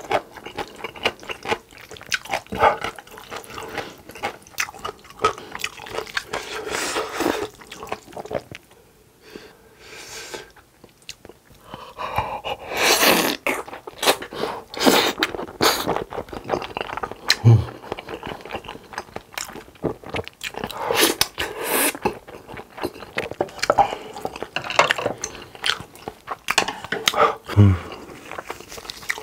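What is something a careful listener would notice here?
A young man chews and smacks his lips wetly close to a microphone.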